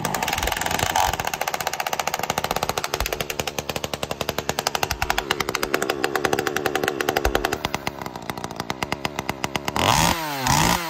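A chainsaw engine idles with a fast, steady putter.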